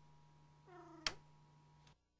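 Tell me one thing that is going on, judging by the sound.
A control knob clicks as it is turned.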